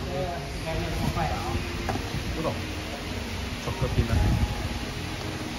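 A waffle iron creaks as it is opened.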